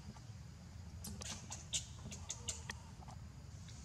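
A small plastic object clicks and rattles in a young monkey's hands.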